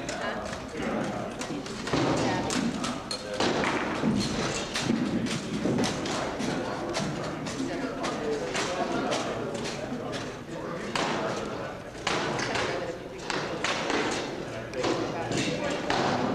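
Wooden swords knock and clatter against shields.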